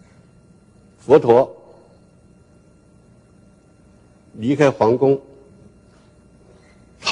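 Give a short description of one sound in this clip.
An elderly man speaks slowly and calmly through a microphone, with pauses between short phrases.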